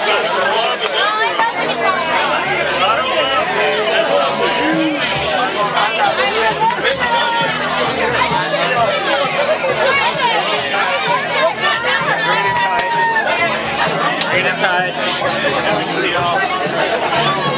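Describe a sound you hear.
A crowd of men and women chatters and shouts loudly all around, close by.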